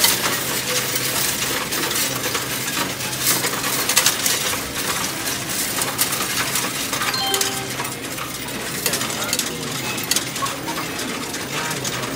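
Coins clatter and rattle as they are dropped into a coin-counting machine.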